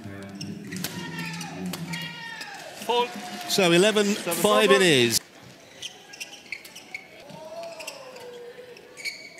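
Shoes squeak on a court floor.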